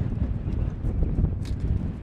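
A man speaks firmly up close.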